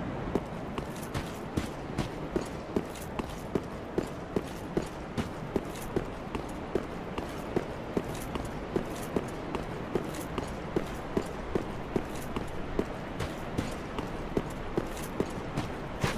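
Armoured footsteps run quickly and steadily over stone.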